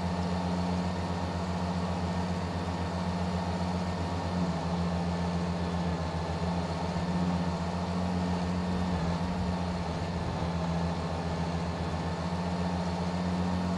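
A truck's diesel engine rumbles steadily as it drives.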